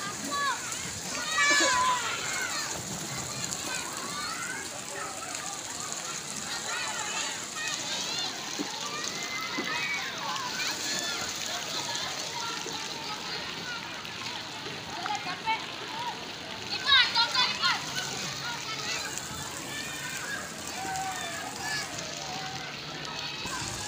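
Children shout and squeal outdoors, with many voices around a pool.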